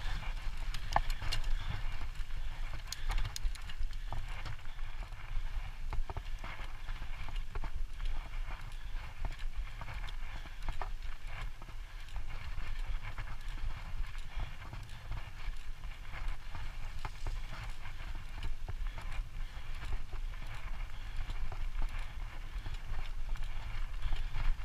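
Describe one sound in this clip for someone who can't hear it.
Bicycle tyres roll and rattle over bumpy grass.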